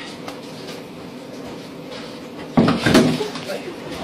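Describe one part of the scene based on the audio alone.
A man slumps heavily off a chair onto the floor.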